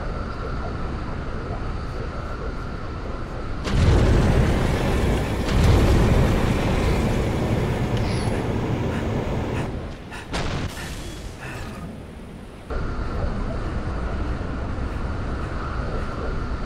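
A hovering vehicle engine hums steadily.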